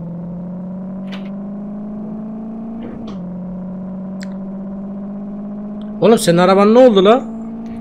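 A car engine hums steadily at a constant pace.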